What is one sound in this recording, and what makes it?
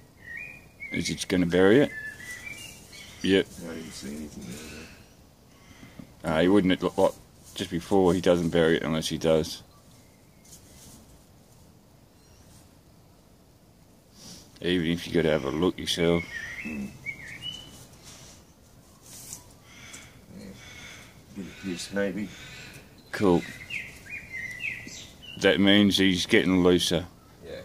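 A man speaks softly and coaxingly nearby, in short bursts with pauses.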